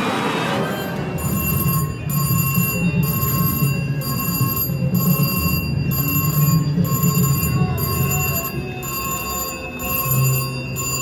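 A slot machine plays bright electronic tones and jingles as its reels spin.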